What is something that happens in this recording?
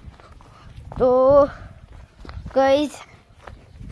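A boy calls out loudly close by, in two short drawn-out shouts.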